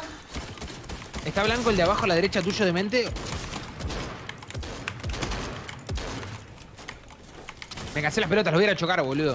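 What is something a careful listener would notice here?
Quick clattering bursts of building sounds come from a video game.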